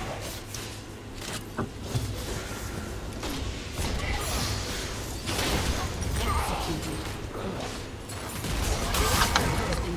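Video game sound effects clash and whoosh during a battle.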